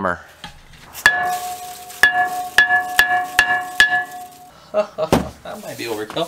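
A hammer strikes a metal brake disc repeatedly, each blow ringing out.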